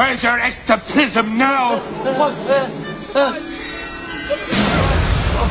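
A man speaks excitedly nearby.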